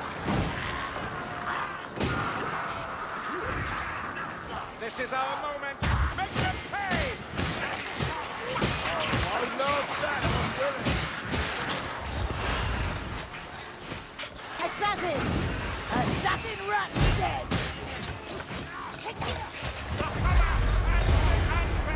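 Blades slash and thud into bodies again and again.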